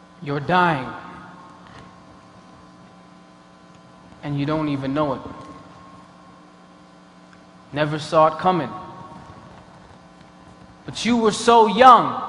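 A man speaks slowly and dramatically into a microphone, in short phrases separated by pauses, in a reverberant hall.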